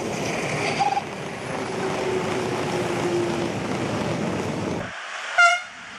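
A model train rumbles along rails.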